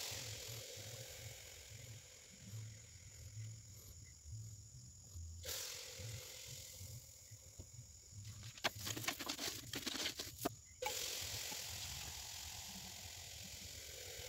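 Liquid fizzes and bubbles softly in a glass beaker.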